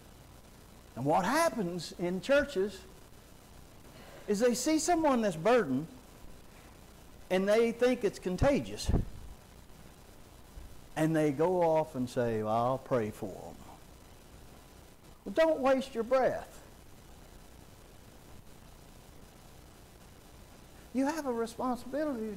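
A man preaches through a microphone in short phrases with pauses, echoing in a large hall.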